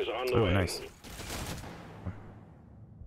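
Electronic blasts and crackling effects burst and fade.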